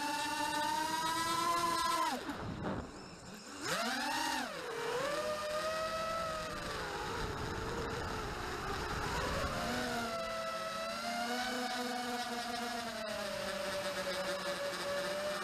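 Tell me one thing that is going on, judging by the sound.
A drone's motors whine steadily, rising and falling in pitch as it flies and briefly dropping away during a flip.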